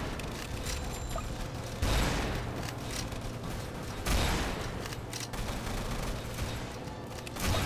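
Guns fire in rapid bursts with booming blasts.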